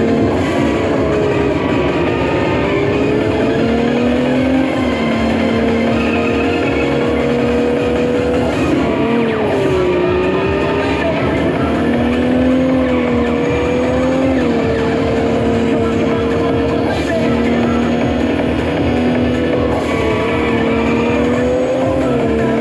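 A racing car engine roars and whines through a loudspeaker, its pitch rising and falling with the gears.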